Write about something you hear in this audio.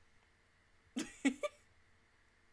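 A young woman laughs softly close to a microphone.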